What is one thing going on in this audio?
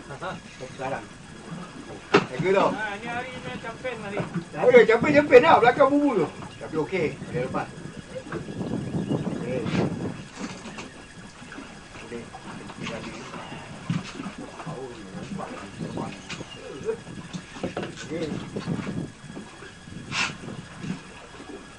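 Men talk and call out nearby, outdoors in wind.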